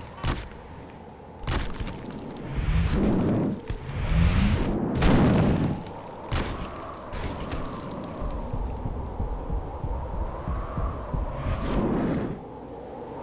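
Heavy thuds and crashes sound as a giant figure climbs and lands on buildings.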